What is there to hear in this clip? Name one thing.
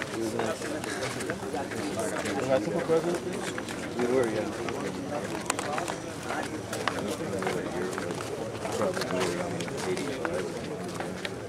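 A crowd of men chat and murmur while walking outdoors.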